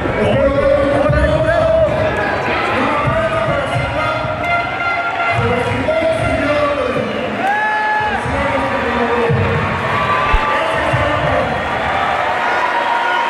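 A crowd cheers and murmurs throughout.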